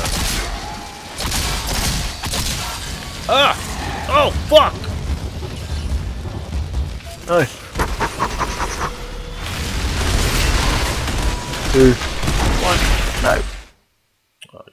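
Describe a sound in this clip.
Gunfire and blasts boom in quick bursts.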